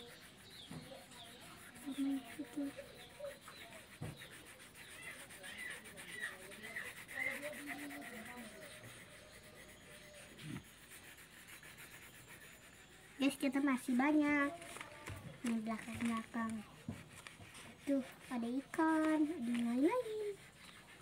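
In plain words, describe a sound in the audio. Crayons scrape and scratch across paper.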